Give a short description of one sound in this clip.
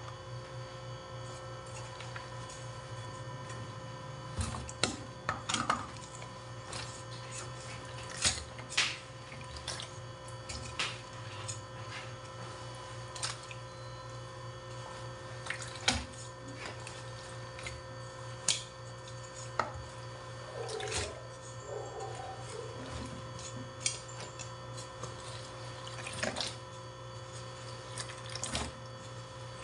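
Wet cloth sloshes in water.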